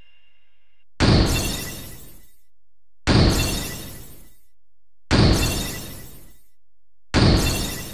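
A heavy whoosh sweeps in several times, each fading away.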